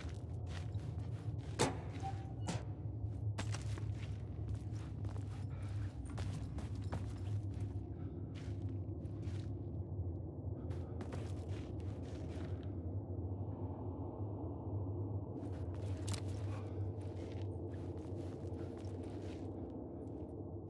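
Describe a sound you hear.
Footsteps thud on a hard floor in a quiet, echoing space.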